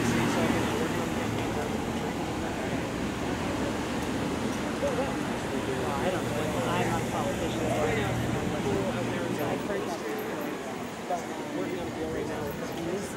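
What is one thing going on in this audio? A crowd of people talk and call out a short way off.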